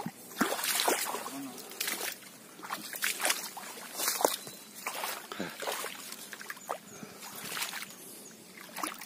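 Water splashes and sloshes as hands dig in shallow mud.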